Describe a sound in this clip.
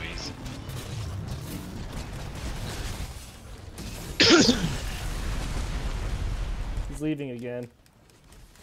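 A monster roars loudly with crashing blasts of fire.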